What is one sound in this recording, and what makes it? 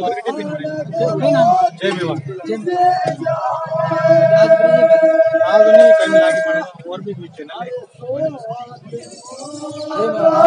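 A man speaks loudly and with animation to a crowd outdoors.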